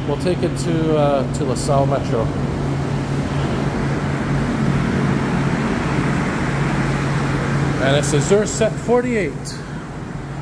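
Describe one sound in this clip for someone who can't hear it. A subway train rolls in alongside and slows to a stop.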